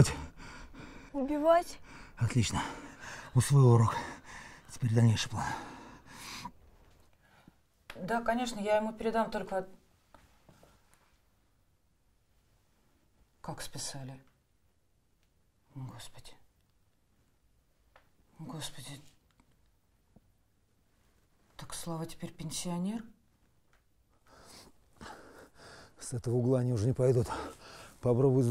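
A man speaks tensely up close.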